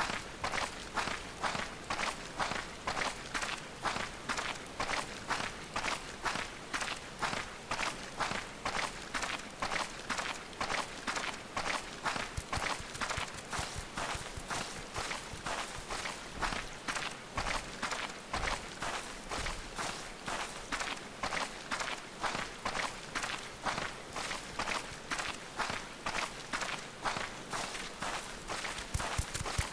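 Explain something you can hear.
Footsteps crunch steadily along a path at a walking pace.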